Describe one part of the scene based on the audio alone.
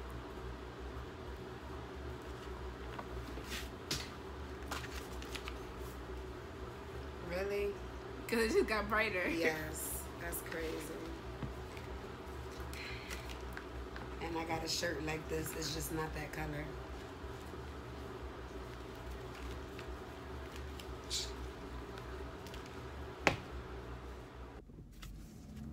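Cardboard boxes and cards rustle and tap as they are handled.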